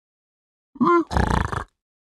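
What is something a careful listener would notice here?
A game villager lets out a short nasal grunt.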